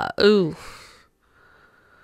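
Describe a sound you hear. A young woman speaks briefly, close into a microphone.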